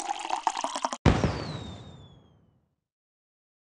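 A celebration pops with a booming thump that fades out.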